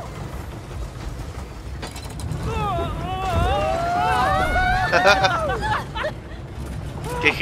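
A roller coaster rumbles and clatters along its track.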